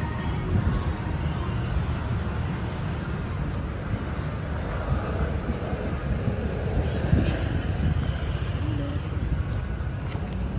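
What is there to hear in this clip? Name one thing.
Footsteps scuff on pavement close by.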